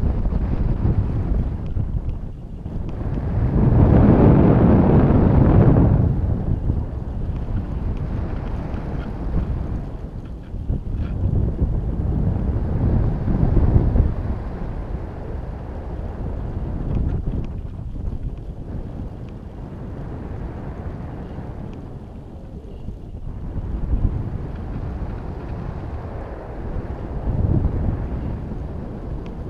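Wind rushes and buffets against the microphone in uneven gusts.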